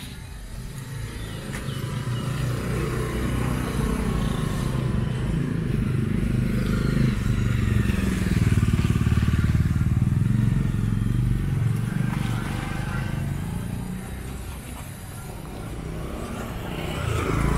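Motorbikes and scooters ride past with a low engine hum.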